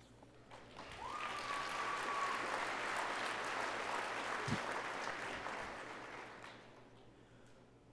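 A crowd applauds in a large hall.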